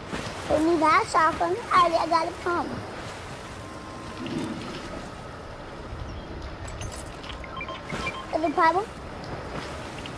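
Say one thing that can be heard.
Water splashes softly as a swimmer paddles.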